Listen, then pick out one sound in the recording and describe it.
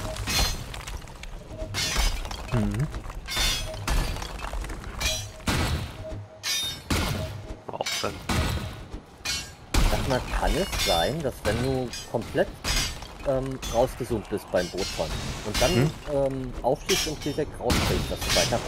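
A pickaxe strikes rock with sharp, repeated knocks.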